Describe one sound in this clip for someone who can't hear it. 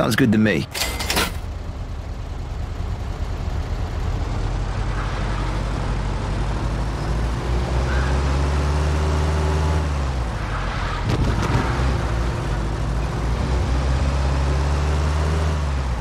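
A car engine revs and hums as the car drives off and speeds along.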